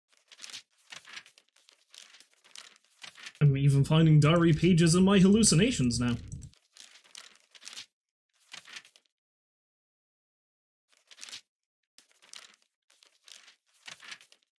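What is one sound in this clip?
Paper pages turn with quick, soft rustles.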